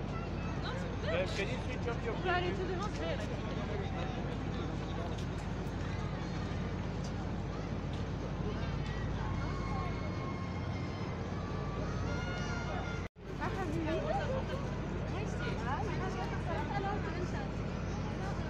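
A crowd chatters outdoors nearby.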